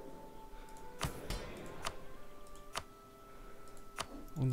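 Short clicks sound several times.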